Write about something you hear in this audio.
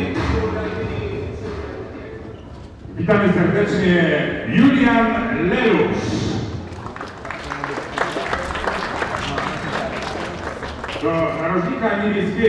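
A man speaks loudly in an echoing hall.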